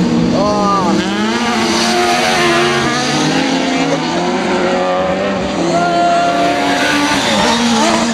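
A small electric motor of a radio-controlled car whines loudly, its pitch rising and falling as the car speeds up and slows down.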